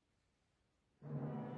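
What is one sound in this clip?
An orchestra suddenly begins playing loudly.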